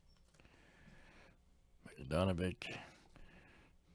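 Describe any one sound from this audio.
Trading cards slide and rustle against each other.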